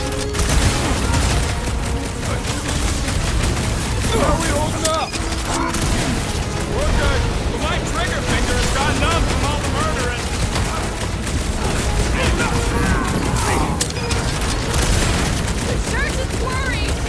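Blaster shots fire in quick bursts.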